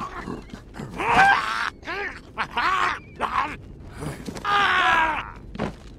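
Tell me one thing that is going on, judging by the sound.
Punches land with heavy thuds during a brawl.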